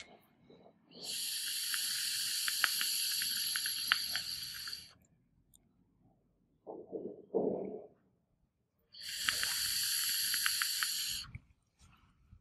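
An electronic cigarette hisses and crackles as a man draws on it.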